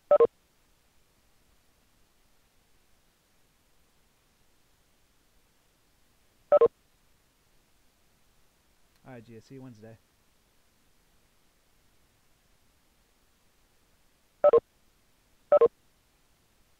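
A short electronic chime sounds several times through a computer speaker.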